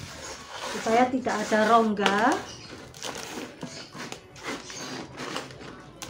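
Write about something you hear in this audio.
Hands press and rustle loose soil in a pot.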